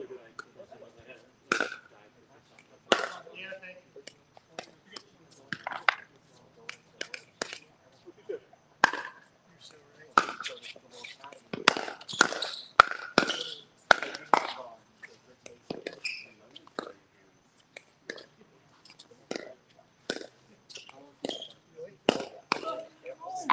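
Paddles strike a ball with sharp pops in a rally.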